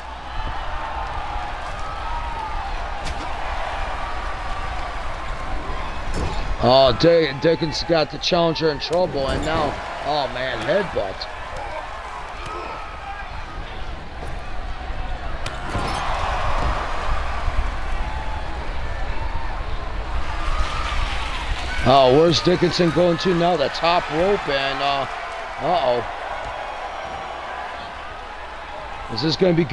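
A large crowd murmurs and cheers.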